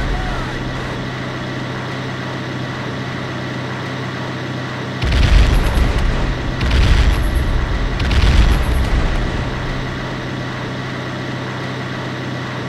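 A propeller plane's engine drones steadily overhead.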